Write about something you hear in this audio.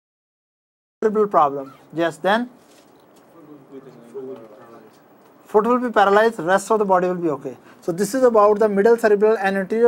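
A middle-aged man lectures calmly close to a microphone.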